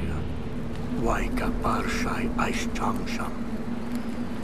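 A campfire crackles.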